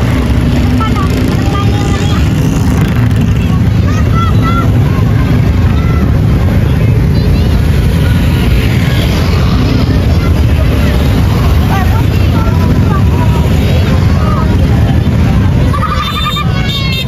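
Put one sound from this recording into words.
Many motorcycle engines rumble and drone close by.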